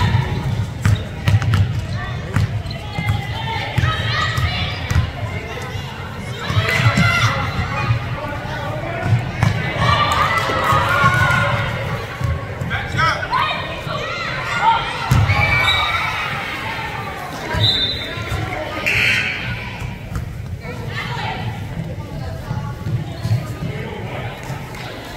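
Spectators and players shout and call out in a large echoing gym.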